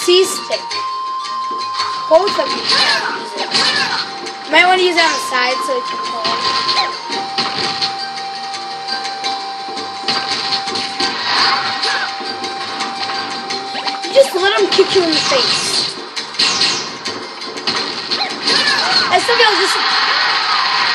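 Video game sound effects of hits and blasts play through a television speaker.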